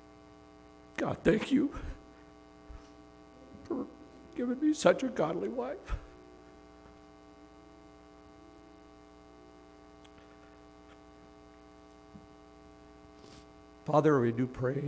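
A man speaks calmly into a microphone over loudspeakers, with pauses.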